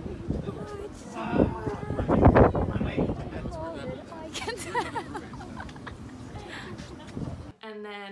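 A young woman talks and laughs close by, outdoors in wind.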